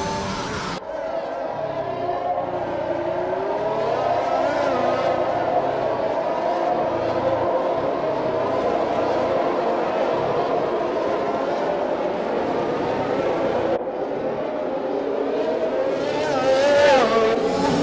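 A racing car engine screams at high revs, shifting gears as it speeds along.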